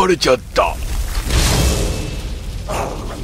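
A crackling lightning spell is cast.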